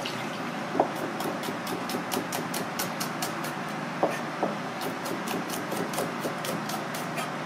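A knife chops quickly against a cutting board.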